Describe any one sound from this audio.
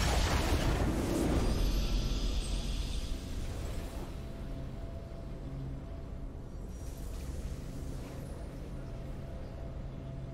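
A triumphant fanfare plays with sustained tones.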